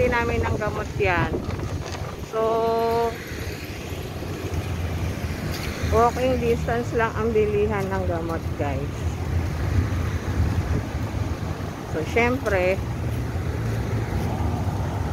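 Traffic rumbles steadily along a nearby street outdoors.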